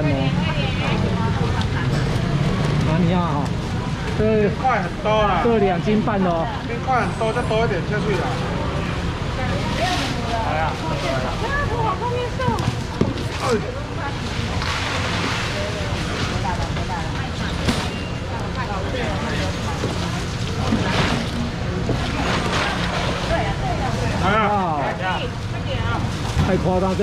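Many people chatter in a busy, crowded hall.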